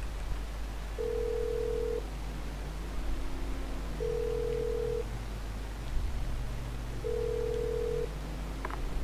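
A phone rings back with slow, even beeps.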